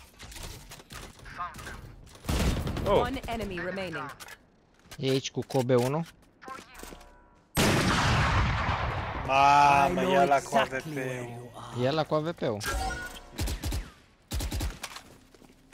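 A young man talks excitedly into a microphone, at times shouting.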